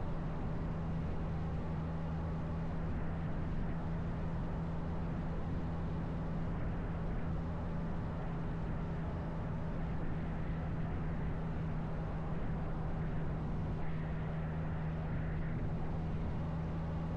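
A motorcycle engine hums steadily at cruising speed.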